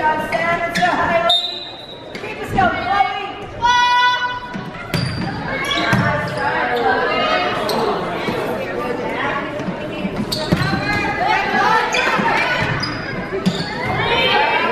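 Girls shout and call out to each other across an echoing gym.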